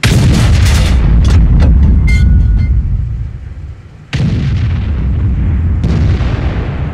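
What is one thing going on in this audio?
A tank cannon fires with loud booming blasts.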